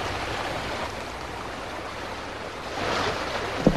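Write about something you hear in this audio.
Water splashes as a horse-drawn coach crosses a river.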